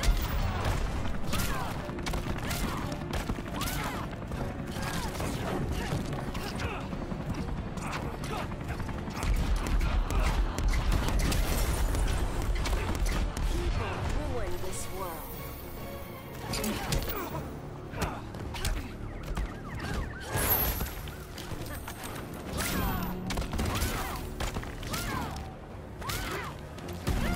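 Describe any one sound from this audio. Punches and kicks land with heavy thuds in a fighting video game.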